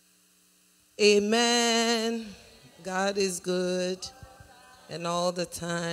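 A woman speaks with animation into a microphone, heard through loudspeakers.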